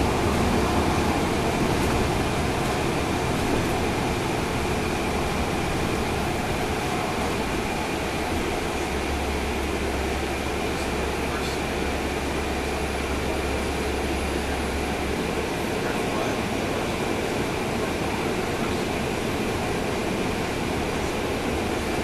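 A vehicle's engine rumbles steadily as it drives along a street.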